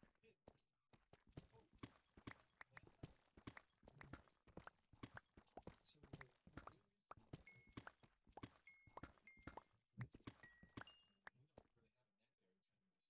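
Rapid stony clicks of blocks being mined tap on and on.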